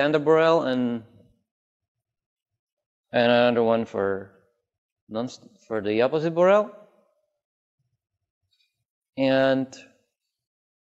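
A man lectures calmly, speaking in short phrases with pauses.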